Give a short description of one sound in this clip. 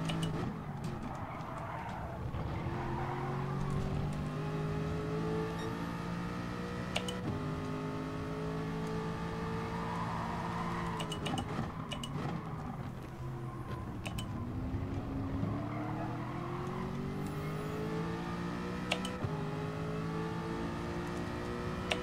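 A race car engine roars, rising in pitch and dropping as it shifts gears.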